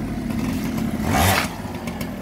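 A motorbike engine revs up sharply nearby.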